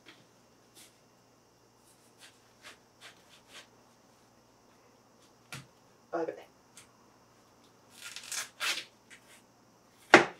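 A knife cuts into a watermelon on a board with soft clicks.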